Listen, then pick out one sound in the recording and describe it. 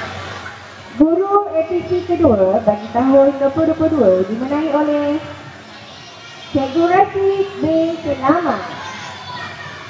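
A woman speaks clearly through a microphone and loudspeaker.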